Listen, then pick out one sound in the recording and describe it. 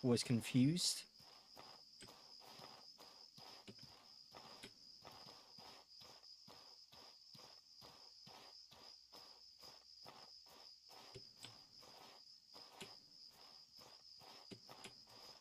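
Footsteps crunch steadily through grass and dirt.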